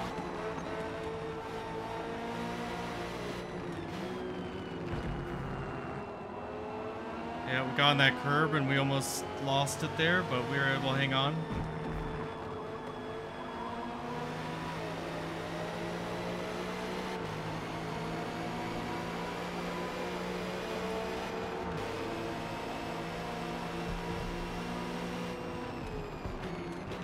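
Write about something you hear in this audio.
A race car engine roars steadily, its pitch rising and falling with the gear changes.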